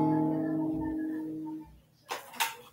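An electric guitar chord rings out and slowly fades.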